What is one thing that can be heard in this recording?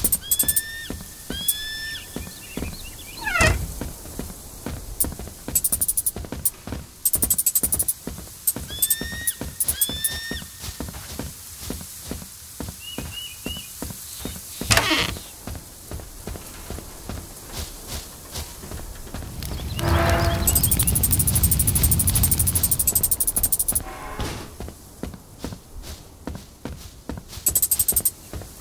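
Footsteps tread steadily on the ground.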